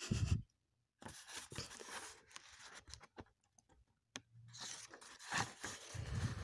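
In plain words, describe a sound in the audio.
Paper pages rustle as a page is turned.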